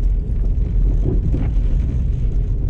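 A windscreen wiper sweeps across the glass.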